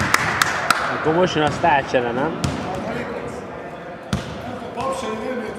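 Young players call out to each other across the echoing hall.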